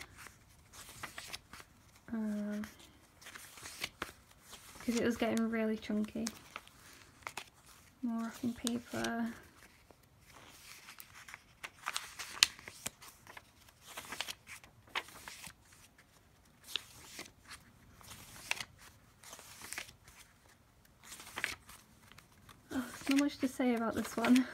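Paper pages rustle and flip as a notebook is leafed through.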